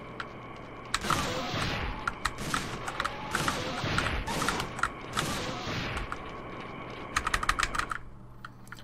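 Gunshots crack in quick bursts from a video game.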